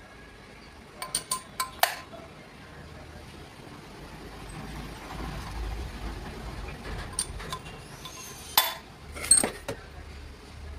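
Metal tools clink and tap sharply against a metal engine part.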